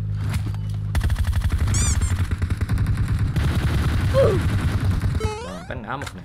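Automatic gunfire rattles rapidly in bursts.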